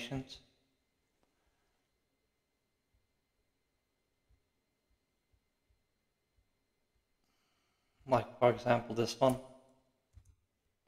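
An older man speaks calmly and close to a microphone, with long pauses.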